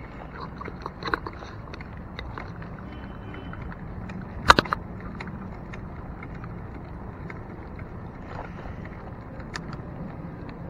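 A bicycle rattles over bumps in the road.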